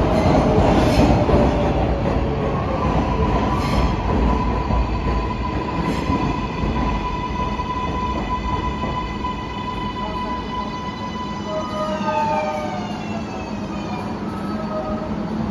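A subway train rumbles and squeals as it rolls into an echoing station.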